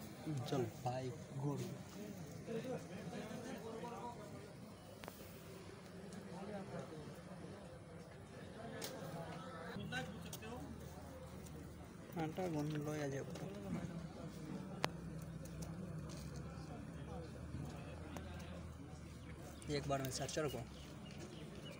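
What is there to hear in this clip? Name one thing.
Young men talk nearby.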